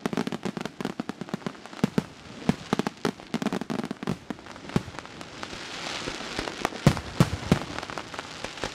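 Fireworks burst with loud booming bangs.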